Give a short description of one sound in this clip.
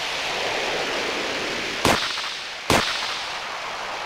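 A snowboarder crashes with a thud into snow.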